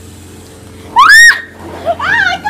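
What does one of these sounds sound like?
A girl screams loudly and shrilly.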